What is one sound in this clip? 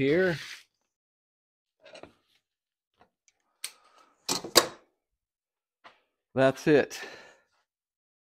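Metal parts clank and knock against each other.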